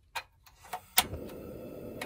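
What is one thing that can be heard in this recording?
The igniter of a portable gas cassette stove clicks.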